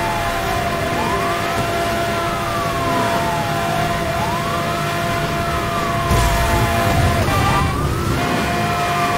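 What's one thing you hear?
A police siren wails, slowly rising and falling.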